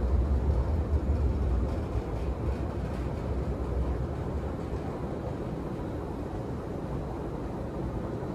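An escalator hums steadily in a large echoing hall.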